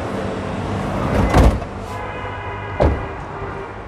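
A car door thuds shut.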